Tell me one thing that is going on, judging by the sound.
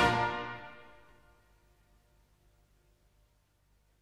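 A brass band ends on a loud chord that rings out and fades in a large hall.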